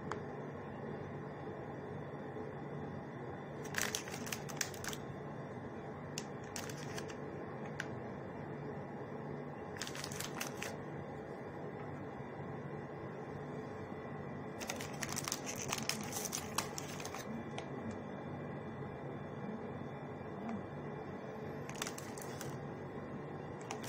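Fingers press soft biscuits into a wet dish with faint squelches and taps.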